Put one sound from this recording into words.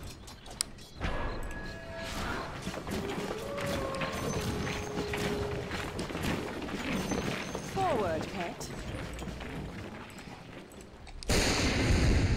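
Video game battle effects clash and whoosh.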